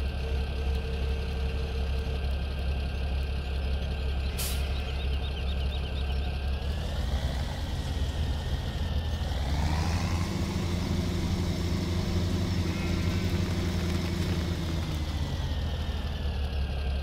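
A tractor engine drones steadily and rises in pitch as it speeds up.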